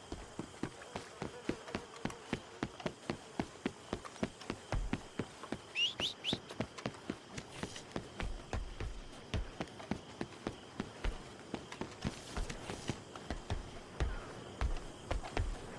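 Boots thud quickly and steadily on wooden planks.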